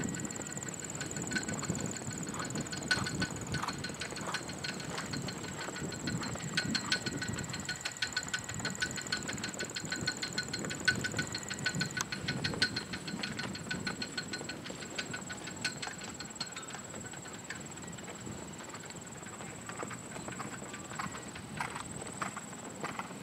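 A horse's hooves thud softly and rhythmically on soft ground.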